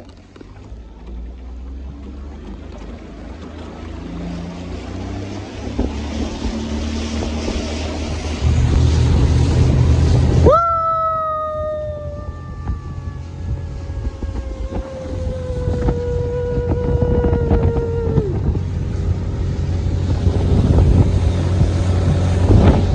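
Water splashes and rushes past a moving boat's hull.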